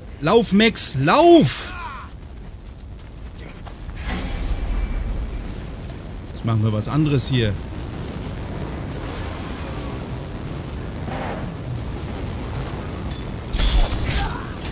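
Flames roar from a flamethrower.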